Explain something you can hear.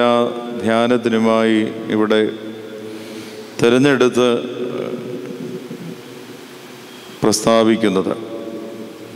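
A man speaks into a microphone in bursts, with pauses, in a room that echoes.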